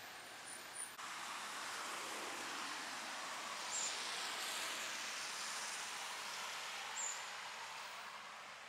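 A car drives past on a wet road with a hiss of tyres.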